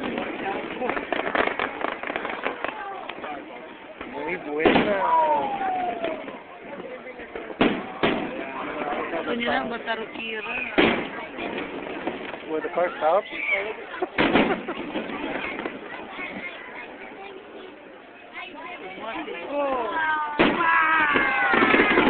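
Firework rockets whistle as they shoot upward.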